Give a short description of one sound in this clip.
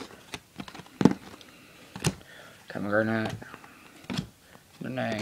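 Cardboard boxes knock and rustle as hands handle them.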